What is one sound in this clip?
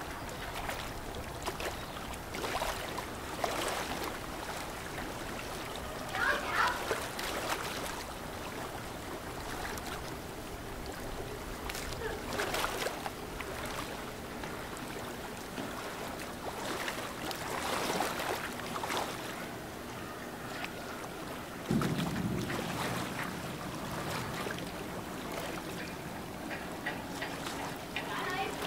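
Water splashes and rushes against the bow of a moving ship.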